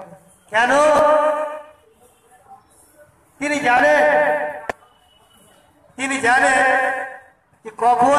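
An elderly woman chants loudly in short, repeated sung phrases close by.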